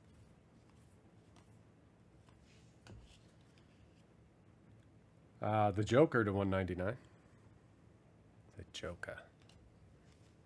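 Trading cards softly rustle and slide against each other in hands.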